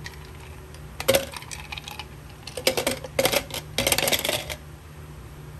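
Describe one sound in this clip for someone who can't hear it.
Ice cubes clatter into a plastic jug.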